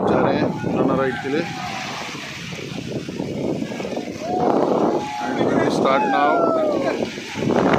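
Footsteps splash through shallow water close by.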